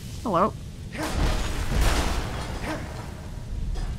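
A magic spell bursts into roaring flames.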